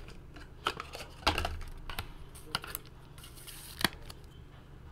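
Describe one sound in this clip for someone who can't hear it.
Plastic card cases click and rattle in hands.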